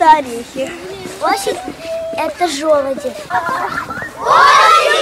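A young girl talks close by.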